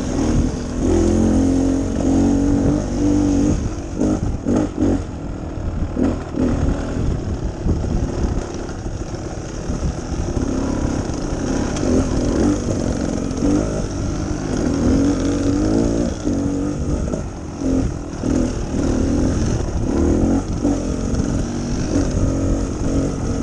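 A dirt bike engine hums and revs up close, rising and falling in pitch.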